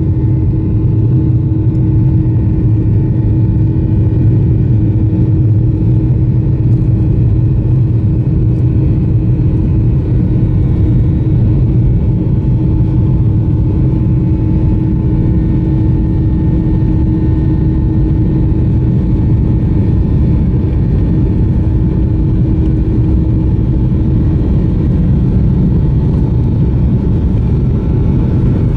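Jet engines drone steadily inside an airliner cabin as it taxis.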